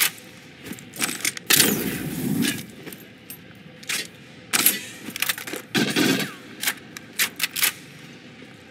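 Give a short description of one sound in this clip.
Game sound effects bang and crash in short bursts.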